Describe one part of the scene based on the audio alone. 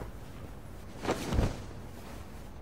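A thud sounds as something is set down.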